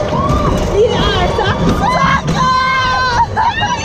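Several young women scream with excitement.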